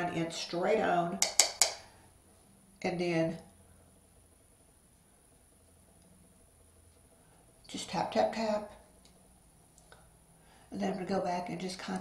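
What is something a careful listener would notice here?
A middle-aged woman speaks calmly and close to a microphone, in short phrases.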